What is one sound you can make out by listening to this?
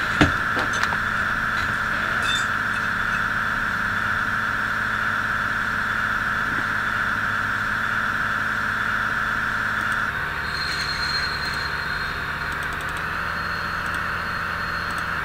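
A diesel locomotive engine drones steadily, then shifts to a lower tone.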